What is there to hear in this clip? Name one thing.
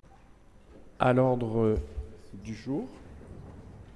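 A middle-aged man speaks briefly into a microphone.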